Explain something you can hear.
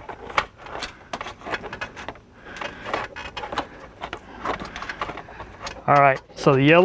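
Plastic trim clicks and scrapes as it is pried loose.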